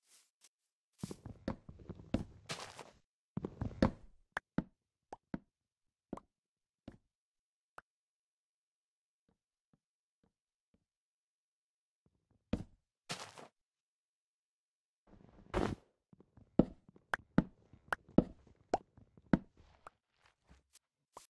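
An axe chops at wood in quick knocks.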